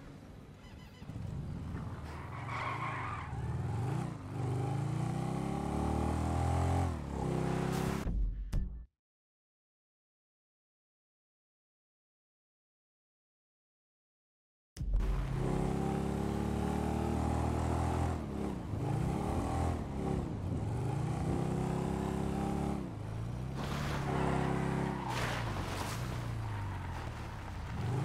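A motorbike engine revs and drones, rising and falling in pitch.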